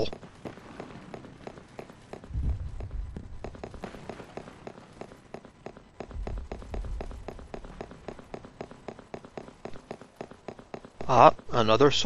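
Footsteps tap softly on hard ground.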